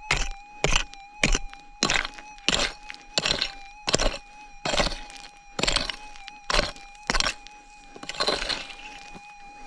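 A pick hoe strikes and scrapes loose dirt again and again.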